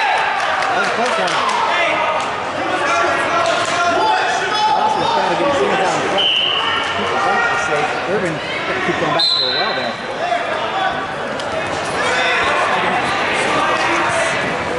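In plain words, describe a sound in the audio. Wrestlers' shoes squeak on the mat.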